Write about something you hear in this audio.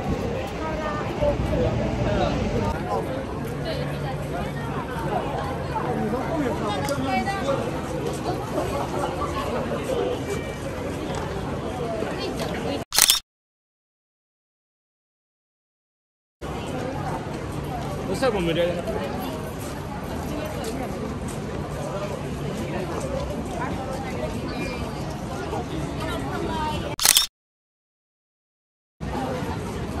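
A crowd of people chatters on a busy street outdoors.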